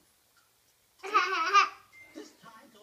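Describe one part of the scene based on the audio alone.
A toddler girl squeals with laughter.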